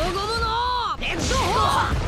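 A fiery explosion booms.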